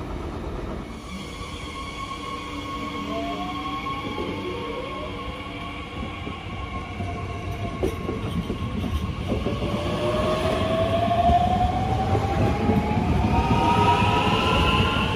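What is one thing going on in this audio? An electric train pulls away close by, its motor whining and rising in pitch.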